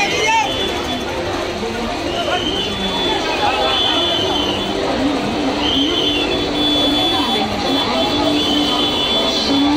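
A crowd of people chatters loudly outdoors.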